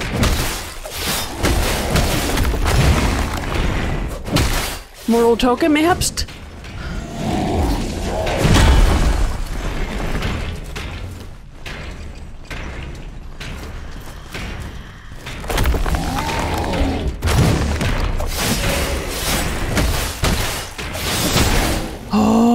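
Metal weapons clash and ring in heavy blows.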